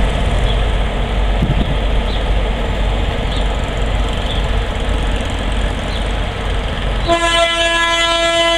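A diesel locomotive engine rumbles steadily as it rolls along the track.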